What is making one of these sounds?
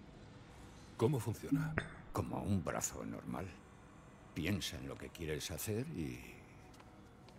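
A middle-aged man speaks calmly and quietly, close by.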